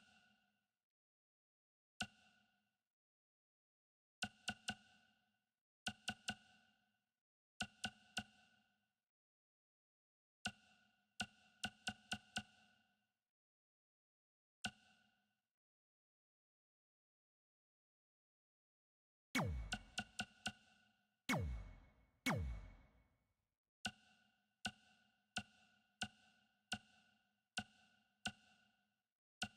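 Short electronic menu chimes click repeatedly as selections change.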